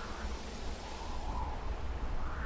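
Wind blows steadily through tall grass outdoors.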